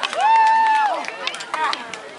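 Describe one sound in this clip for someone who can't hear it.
A sword clashes against a wooden staff.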